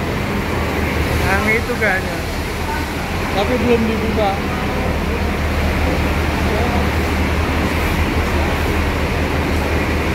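A bus engine idles with a steady low rumble.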